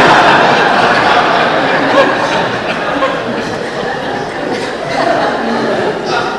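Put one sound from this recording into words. A man speaks calmly through a microphone in a reverberant hall.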